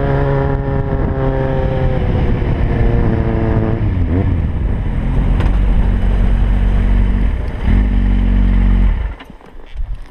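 A motorcycle engine revs loudly close by, dropping in pitch as it shifts gears.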